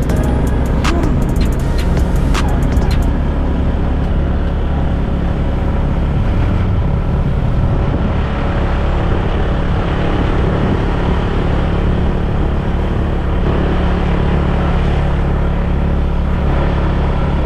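A motorcycle engine hums steadily up close as it rides along.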